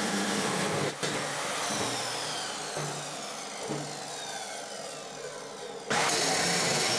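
A chop saw's blade whines as it spins down.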